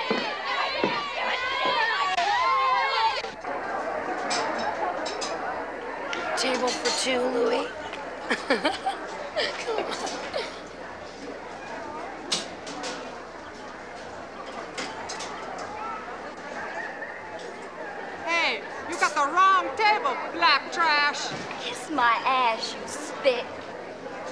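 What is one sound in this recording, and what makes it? A crowd chatters in a busy room.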